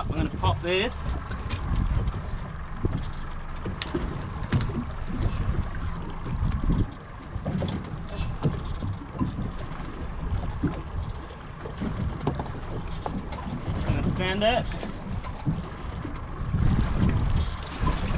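Waves slosh against a boat's hull.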